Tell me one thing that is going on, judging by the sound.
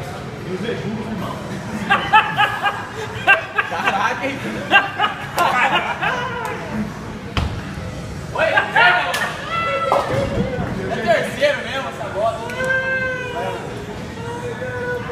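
Young men talk and laugh loudly nearby.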